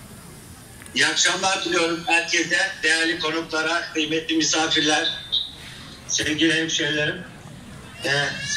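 A woman calls out loudly and at length, heard through a loudspeaker.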